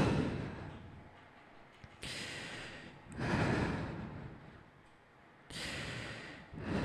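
A young man beatboxes into a microphone with breathy bursts and deep thumps.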